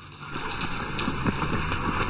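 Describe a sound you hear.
Boots crunch quickly through snow.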